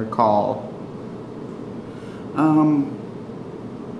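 An elderly man speaks briefly and calmly, close by.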